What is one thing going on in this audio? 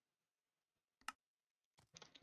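A soft click sounds once.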